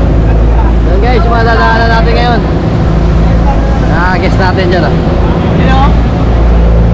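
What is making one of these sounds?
A young man talks nearby in a lively way.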